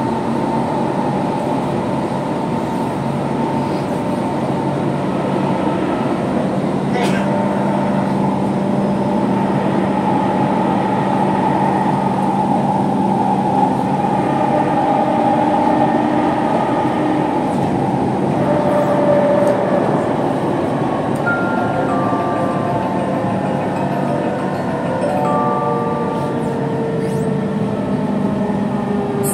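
A train rumbles and hums steadily while moving.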